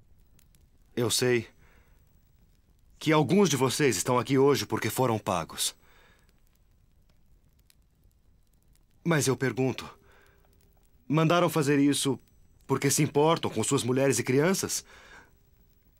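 A man speaks loudly and firmly nearby.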